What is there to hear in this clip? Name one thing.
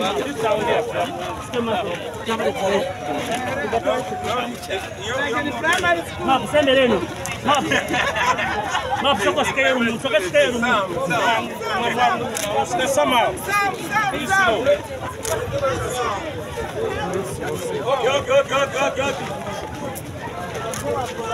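A crowd of men and women sings and chants loudly outdoors.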